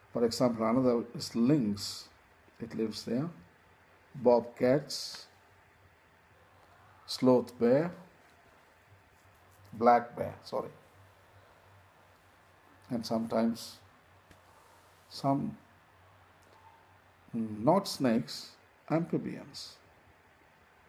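A middle-aged man speaks calmly and close to the microphone, in short bursts with pauses.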